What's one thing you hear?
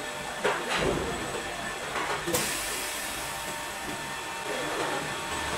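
A large printer's motors whir steadily as its head moves.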